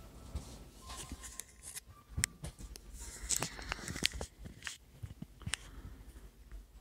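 Fingers rub and knock against a phone close up.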